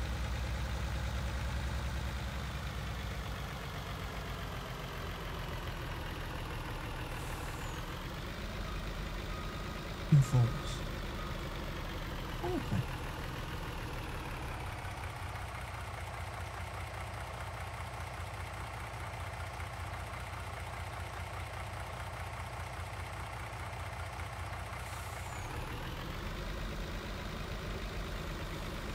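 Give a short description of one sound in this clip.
A truck engine hums steadily and shifts in pitch as the truck drives and stops.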